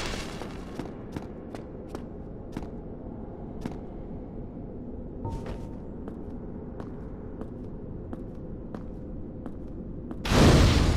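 Bare footsteps patter on stone.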